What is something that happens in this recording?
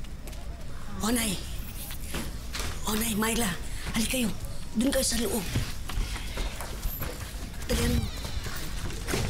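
An older woman talks with animation nearby.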